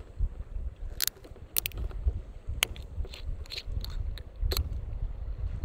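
A glass bottle taps and clinks against a hard plastic lid.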